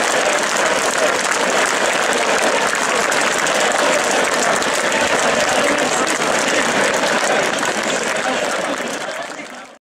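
A large crowd outdoors cheers and shouts loudly.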